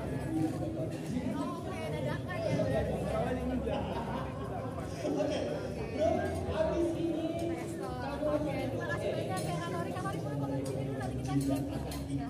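A young woman asks questions with animation through a handheld microphone.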